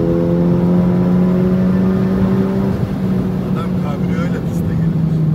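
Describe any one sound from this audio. A turbocharged four-cylinder car engine drones at high speed, heard from inside the cabin, then eases off.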